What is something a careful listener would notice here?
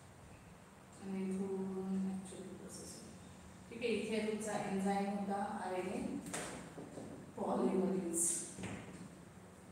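A young woman speaks calmly, close by.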